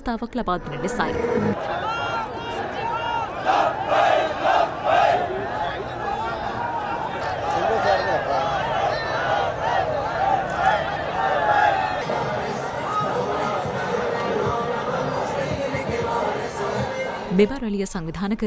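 A large crowd chants and shouts outdoors.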